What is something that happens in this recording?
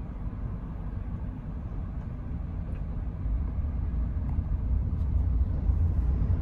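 A car engine hums low and steady from inside the car while driving, growing a little louder.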